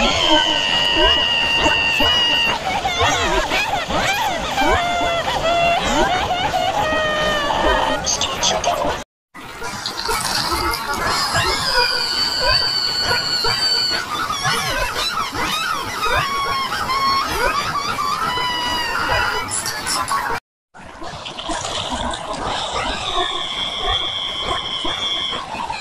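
A cartoon character wails and cries shrilly, heavily distorted.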